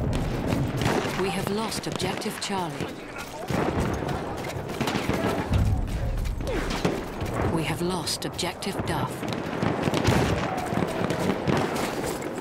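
Footsteps crunch over cobblestones and rubble.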